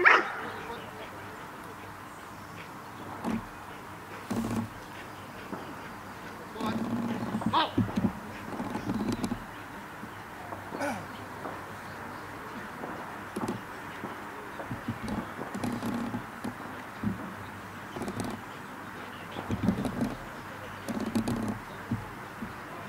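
A man speaks calmly to a dog nearby, outdoors.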